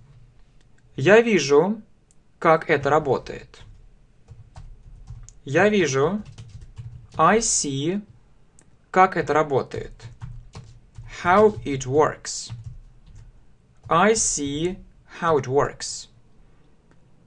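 A man speaks calmly and slowly into a close microphone, in short phrases with pauses.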